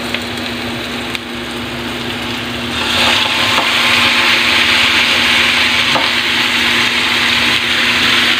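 Pieces of meat drop into a sizzling pan.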